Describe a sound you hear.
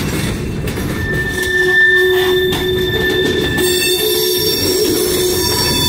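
Train wheels squeal against the rails with a high, steady whine.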